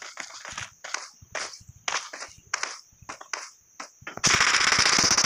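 Footsteps thud quickly on a metal surface.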